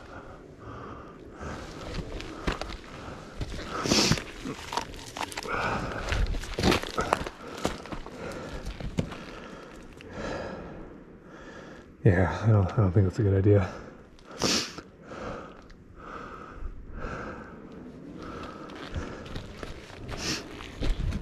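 Bicycle tyres roll and scrape over rock and dirt.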